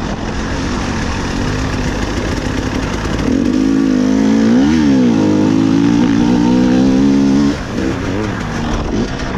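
A dirt bike engine revs loudly, rising and falling in pitch.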